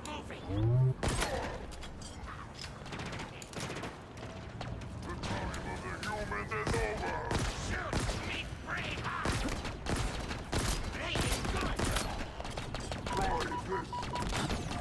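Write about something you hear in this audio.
Gunshots fire in quick bursts.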